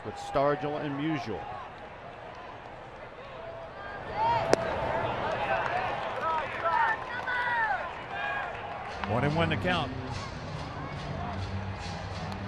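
A crowd murmurs in a stadium.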